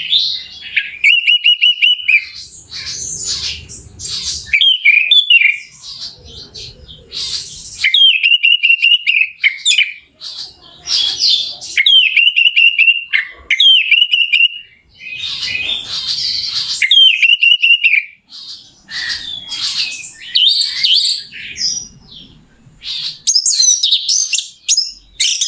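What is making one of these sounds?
A small songbird sings loud, rapid trills and chirps close by.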